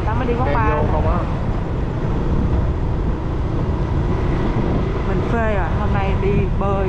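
A vehicle engine hums steadily as it drives along a street.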